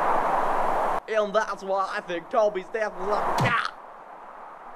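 A young man talks excitedly in a cartoonish voice.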